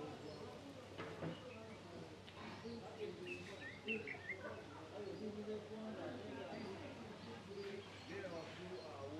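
A man talks quietly on a phone.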